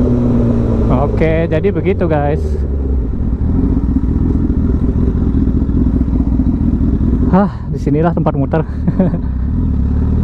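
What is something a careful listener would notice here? A motorcycle engine revs up and down sharply as the rider shifts gears.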